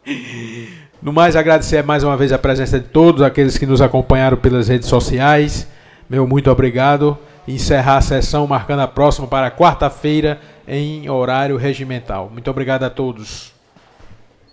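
A man speaks calmly and steadily through a microphone.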